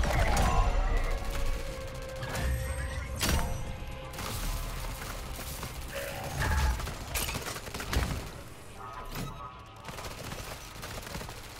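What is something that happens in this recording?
A swirling portal hums and whooshes.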